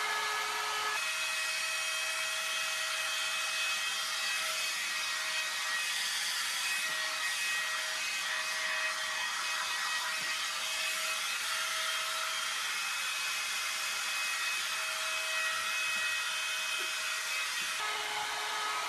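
A hair dryer blows steadily.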